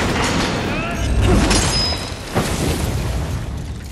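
Flames burst and roar.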